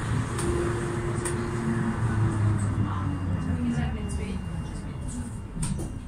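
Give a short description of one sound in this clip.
A tram motor hums and whines, falling in pitch as the tram slows to a stop.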